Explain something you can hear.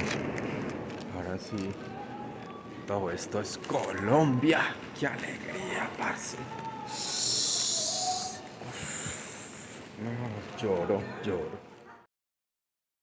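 A busy indoor hall hums with distant background chatter.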